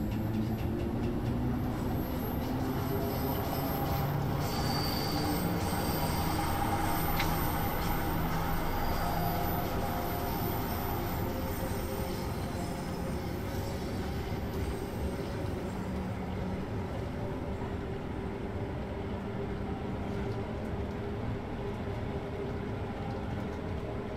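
A train rumbles steadily through a tunnel, its motor humming.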